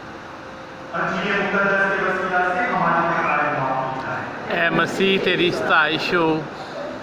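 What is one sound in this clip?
A young man chants through a microphone in a reverberant hall.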